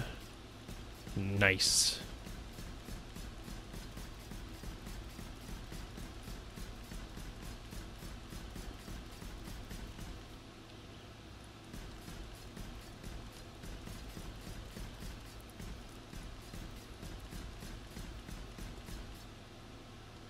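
Footsteps tap quickly on hard concrete.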